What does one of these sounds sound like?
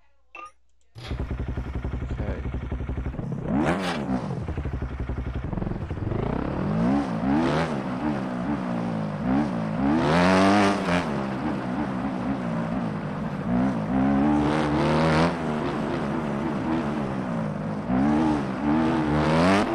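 A motorcycle engine idles and then revs up and down as the bike rides.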